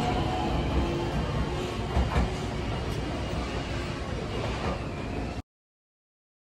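A train rumbles slowly into a station along the rails.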